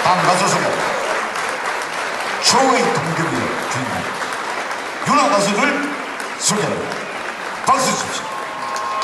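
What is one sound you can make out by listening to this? A man speaks with animation through a loudspeaker.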